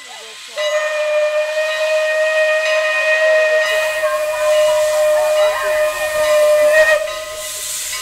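A steam locomotive's whistle blows a long, steady, shrill note.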